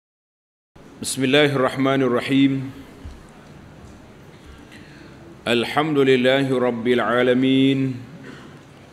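An elderly man chants slowly into a microphone, with pauses.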